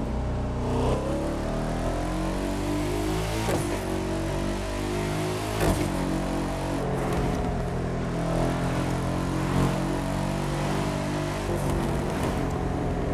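A sports car engine roars steadily, rising in pitch as it speeds up through the gears.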